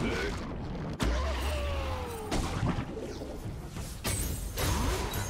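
Game spell effects whoosh and crash during a fight.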